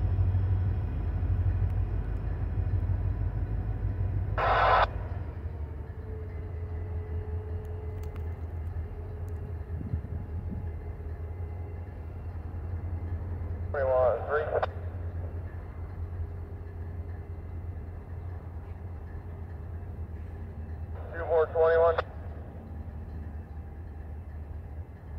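A diesel locomotive engine rumbles low in the distance, slowly moving away.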